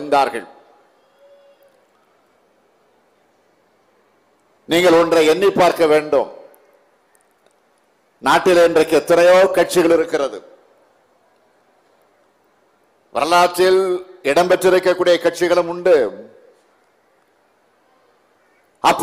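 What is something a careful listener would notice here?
A middle-aged man speaks forcefully into a microphone in a room with a slight echo, pausing between phrases.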